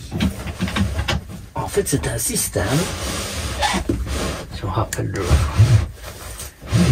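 An older man talks calmly and close by.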